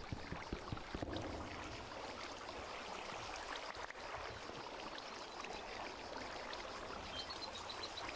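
A young man talks calmly into a close microphone.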